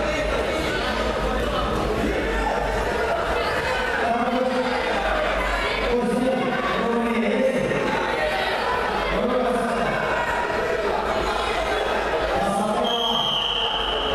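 A crowd of spectators chatters and shouts in a large echoing hall.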